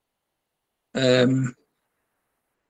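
A second man speaks briefly over an online call.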